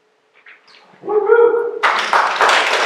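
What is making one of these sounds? A group of people sing a short held note together in an echoing hall.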